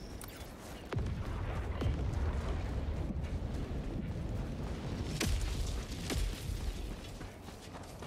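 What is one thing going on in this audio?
A jetpack roars with a low rumble.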